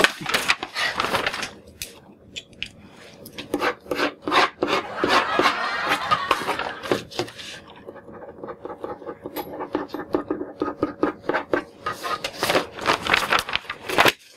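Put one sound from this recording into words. Paper rustles sharply.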